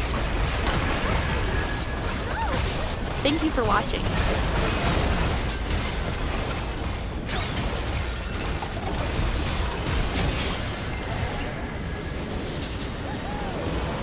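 Game spell effects crackle and clash in a busy fight.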